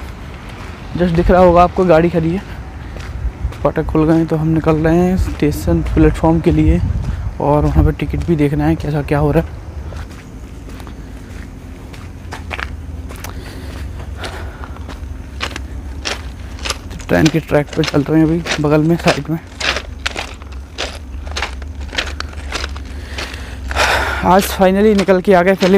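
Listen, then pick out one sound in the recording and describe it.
A man's clothing rustles and thumps against a clip-on microphone.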